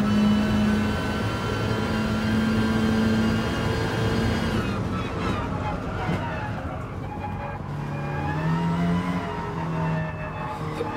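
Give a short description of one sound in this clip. Gears shift with sharp changes in engine pitch.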